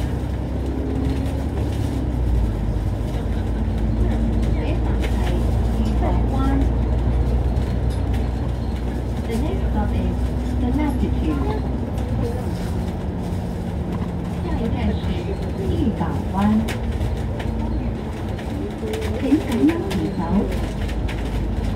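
A vehicle's engine rumbles steadily.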